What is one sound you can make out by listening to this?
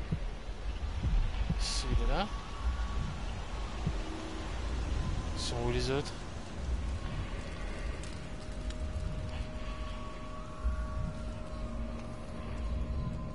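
A young woman talks quietly through a headset microphone.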